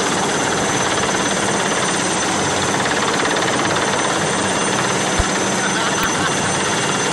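A helicopter's rotor roars overhead.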